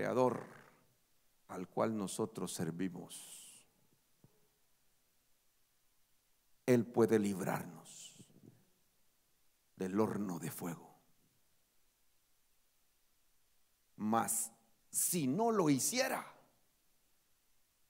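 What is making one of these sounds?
A man speaks with animation through a microphone, in bursts with pauses.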